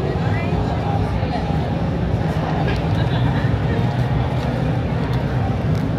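High heels click on pavement.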